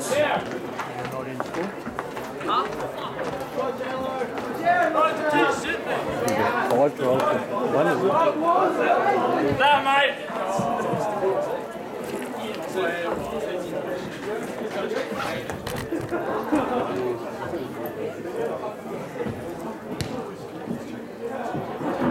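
A crowd of young people chatter and call out close by, outdoors.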